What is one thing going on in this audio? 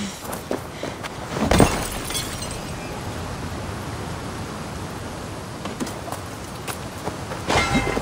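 Footsteps scrape on rock while climbing.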